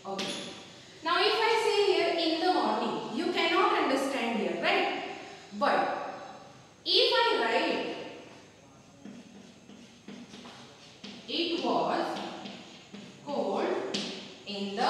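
A woman speaks clearly and calmly, in a room with some echo.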